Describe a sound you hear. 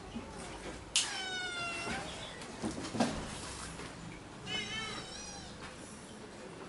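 A kitten mews in high, thin cries.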